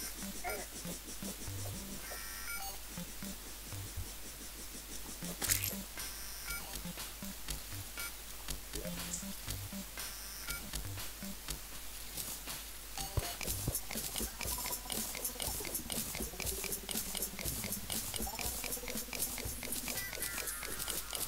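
A pickaxe chips at stone again and again in short, sharp knocks.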